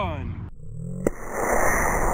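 A model rocket motor ignites with a sharp pop.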